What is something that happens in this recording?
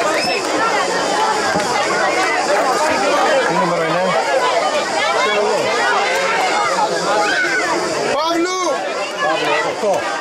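A crowd of spectators chatters and calls out close by, outdoors.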